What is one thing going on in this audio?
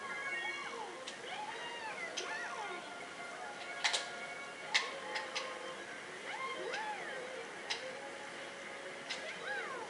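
A racing video game's music and sound effects play from a television speaker.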